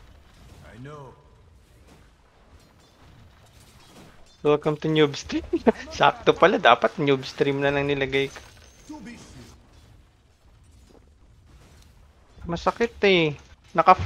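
Weapons clash and magic effects crackle in a fight.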